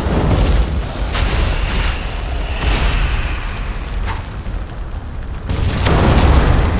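Fiery spell blasts crackle and burst.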